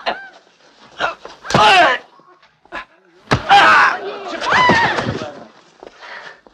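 Men scuffle and grapple in a fight, with heavy thuds.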